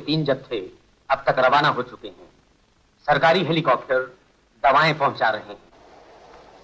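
A man's voice speaks from a radio loudspeaker in short bursts.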